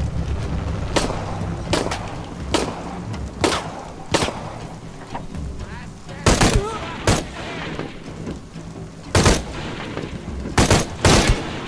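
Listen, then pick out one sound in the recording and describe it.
Rifle shots crack out one at a time, sharp and loud.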